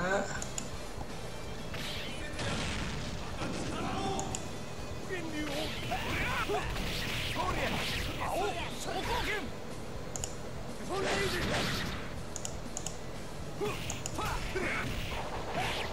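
Punches, kicks and blasts from a fighting game crash and boom.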